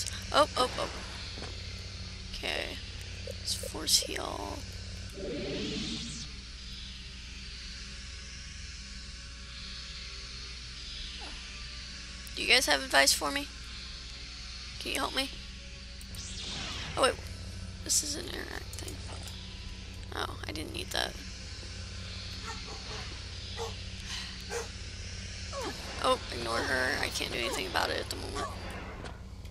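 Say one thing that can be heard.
A lightsaber hums with a low, steady drone.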